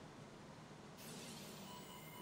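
A swelling magical whoosh sounds near the end.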